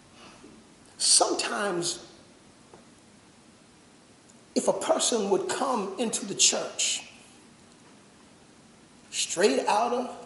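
A man preaches loudly through a microphone in bursts, with pauses between them, in a room with some echo.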